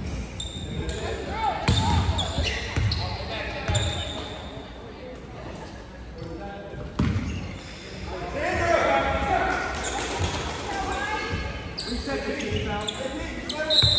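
Voices of spectators and players echo in a large gym.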